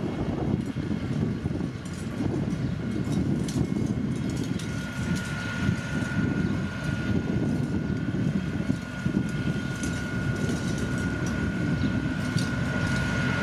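A loaded truck engine chugs and rattles past.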